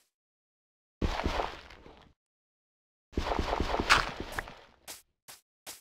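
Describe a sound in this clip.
A block of dirt crunches as it is dug out.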